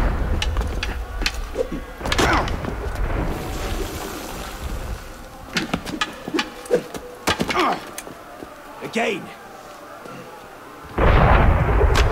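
Swords clash and clack with sharp metallic knocks.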